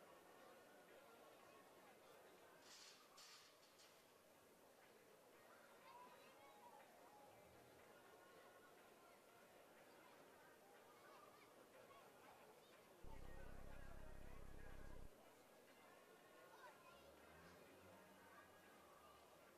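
A crowd chatters outdoors, with many voices overlapping.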